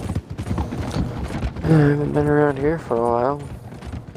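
Hooves clatter on a wooden bridge.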